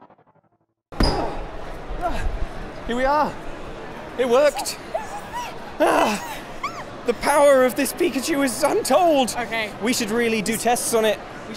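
A young woman talks and laughs with animation close by.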